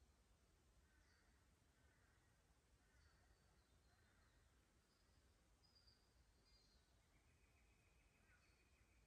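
A light breeze rustles through grass and leaves.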